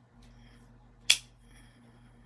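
A folding knife blade snaps open with a sharp click.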